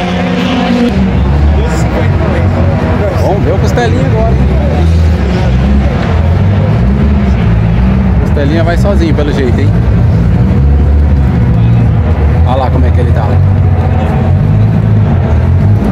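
A race car engine idles nearby with a loud, lumpy rumble.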